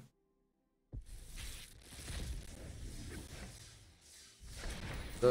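A game sound effect whooshes as a card pack bursts open.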